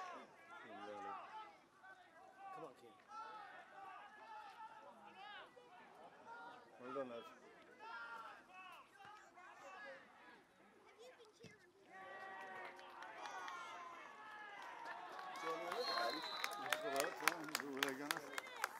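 Men talk and shout nearby, outdoors.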